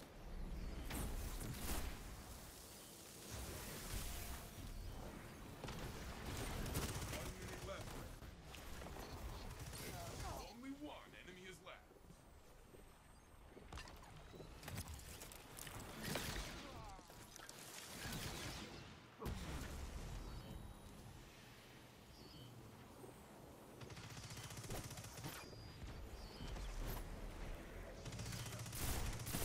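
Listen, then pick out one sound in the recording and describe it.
Gunfire bursts out in quick, loud shots.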